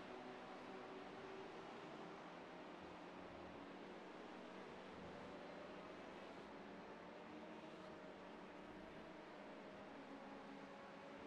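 A race car engine drones steadily as the car speeds along.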